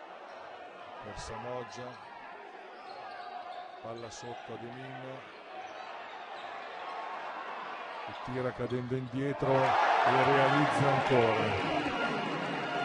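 Men shout from the sidelines.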